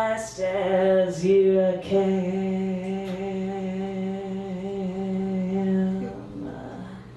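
A woman sings a long held note loudly into a microphone.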